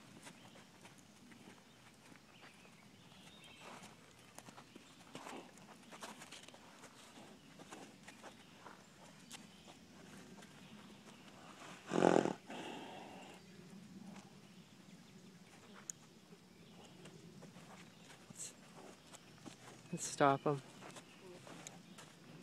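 Hooves thud softly on packed dirt as a foal walks.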